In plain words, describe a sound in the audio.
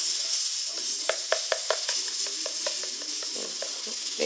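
A spoon stirs and clinks against a plastic bowl.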